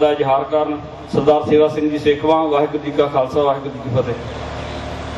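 A middle-aged man chants in a melodic voice through a loudspeaker.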